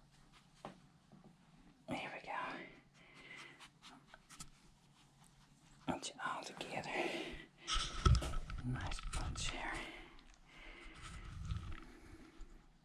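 Puppies shuffle and rustle on a soft towel.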